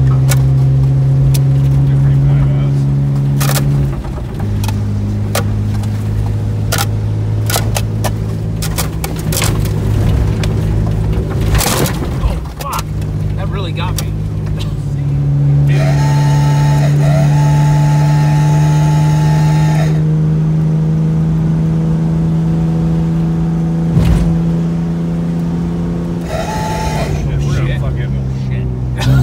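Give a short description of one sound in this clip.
Tyres crunch over a bumpy dirt road.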